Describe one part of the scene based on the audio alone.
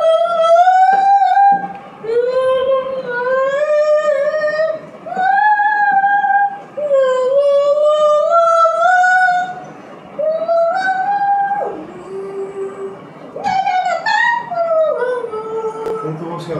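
A young girl sings nearby in a high, clear voice.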